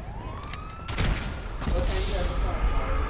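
A single gunshot bangs loudly.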